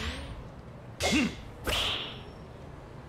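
A golf club swings and sharply strikes a ball.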